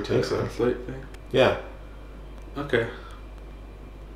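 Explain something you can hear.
A young man speaks briefly and calmly nearby.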